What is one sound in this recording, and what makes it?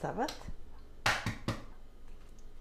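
An egg knocks against the rim of a pot.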